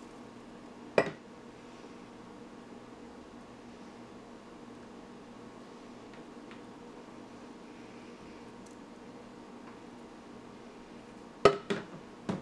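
A blender jug knocks against a glass jar.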